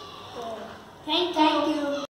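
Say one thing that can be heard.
A boy speaks loudly nearby.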